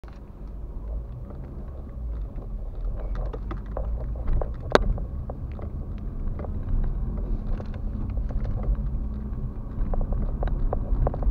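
Tyres rumble over a bumpy road surface.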